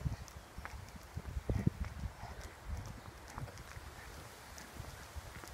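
Footsteps tread steadily on a path outdoors.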